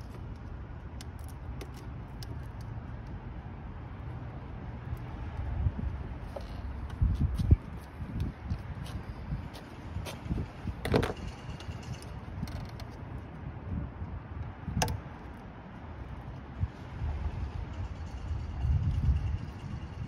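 Metal tools clink and knock against engine parts.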